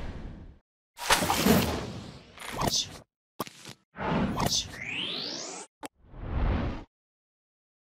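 Prize cards flip out with quick whooshes and bright chimes.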